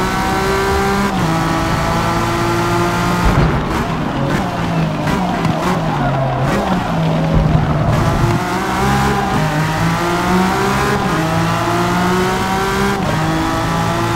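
A racing car engine roars at high revs, dropping in pitch under braking and rising again as it speeds up.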